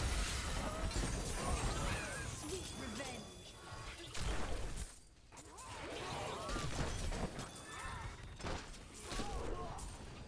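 Magic blasts and explosions burst repeatedly in a hectic fight.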